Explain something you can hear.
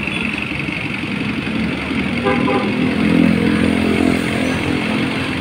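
A diesel engine idles with a steady rumble close by.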